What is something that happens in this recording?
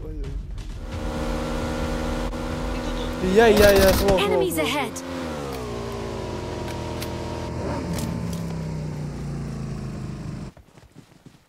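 A motorbike engine drones and shifts in pitch as it rides.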